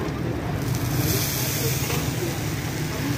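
Water hisses loudly as it is sprayed onto a hot griddle.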